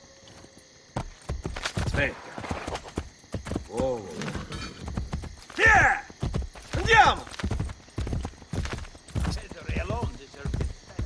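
A horse's hooves thud rapidly on soft ground.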